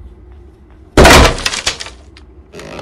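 A wooden plank drops onto a wooden floor with a heavy thud.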